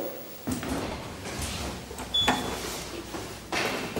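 A lift button clicks as it is pressed.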